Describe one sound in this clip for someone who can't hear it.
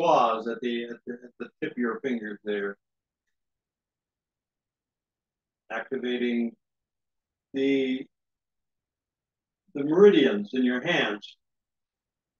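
An older man speaks calmly and slowly into a close microphone, with long pauses.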